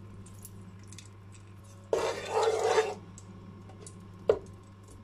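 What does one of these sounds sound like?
Oil sizzles and crackles softly in a hot pan.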